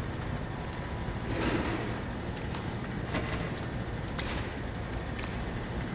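A metal drawer slides shut with a thud.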